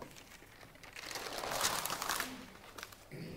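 A large paper sheet rustles as it is flipped over.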